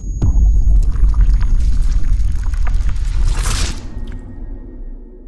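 Glass shatters with a deep, rumbling crash.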